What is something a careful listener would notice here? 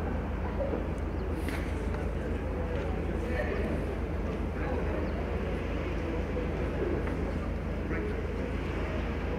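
A crowd murmurs and chatters in a large open stadium.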